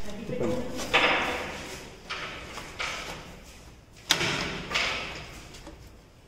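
Hands press and shift the lid of a metal ballot box.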